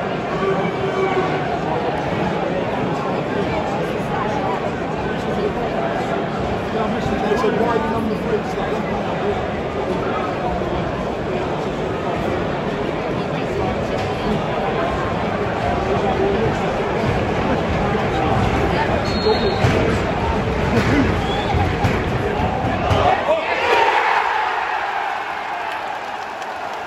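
A large stadium crowd chants and murmurs outdoors.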